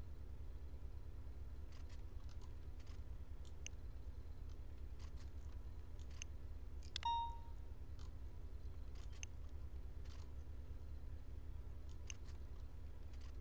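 Short soft clicks sound as items are moved around a game menu.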